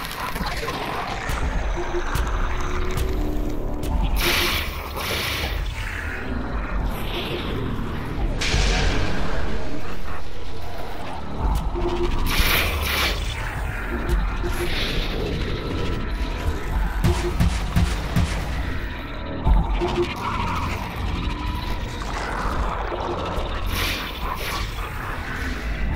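Rapid magical gunfire crackles without a break in a video game.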